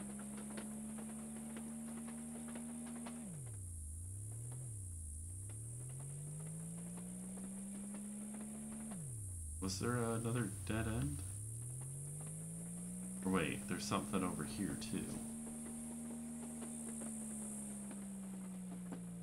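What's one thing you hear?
A motor hums steadily, dropping and rising in pitch.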